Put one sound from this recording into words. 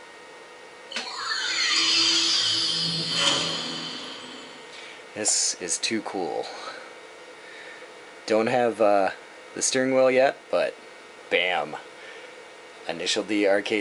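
An arcade game plays swooshing start-up sounds through a loudspeaker.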